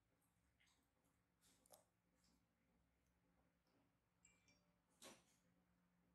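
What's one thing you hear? A metal tool clicks and scrapes faintly against skin.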